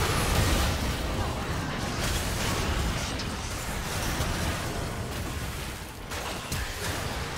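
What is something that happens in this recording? Spell effects crackle and burst in a game fight.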